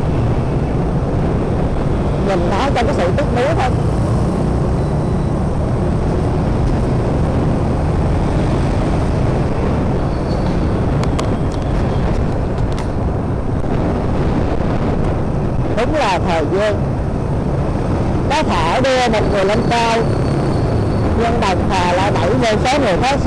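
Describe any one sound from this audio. Motorbike engines hum nearby in busy traffic.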